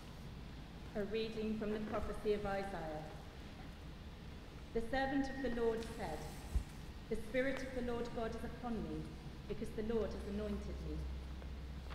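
A young woman speaks calmly into a microphone in an echoing hall.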